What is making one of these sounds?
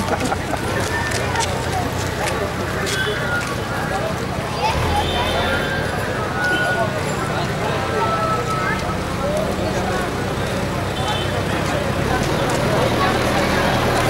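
Electric rickshaw motors hum as they roll slowly past.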